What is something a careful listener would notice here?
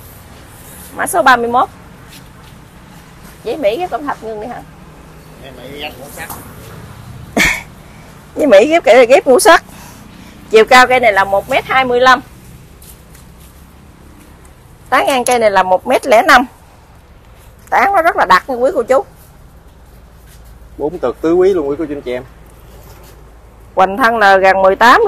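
A middle-aged woman talks with animation close by.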